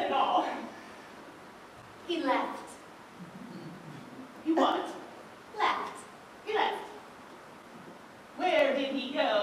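A woman speaks with animation, heard from a distance in a large hall.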